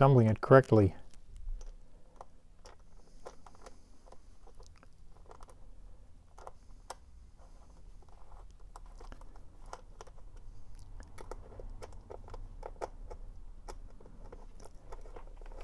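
A screwdriver turns screws with soft, faint clicks.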